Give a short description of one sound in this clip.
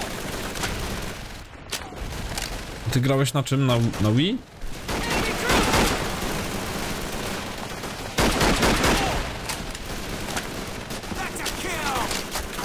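A rifle bolt clicks as it is worked.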